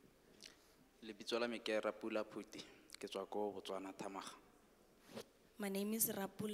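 A young man speaks into a microphone, heard through loudspeakers in a large echoing hall.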